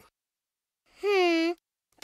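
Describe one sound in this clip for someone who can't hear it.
A young girl hums thoughtfully in a cartoon voice.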